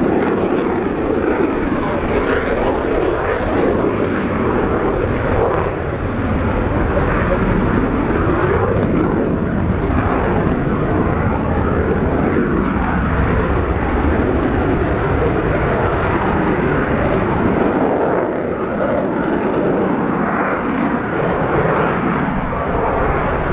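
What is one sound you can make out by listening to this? A twin-engine jet fighter roars overhead on afterburner as it climbs.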